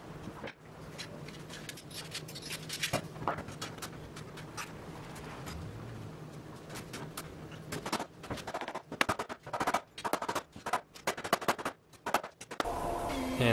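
Metal bar clamps clatter and click as they are set in place and tightened.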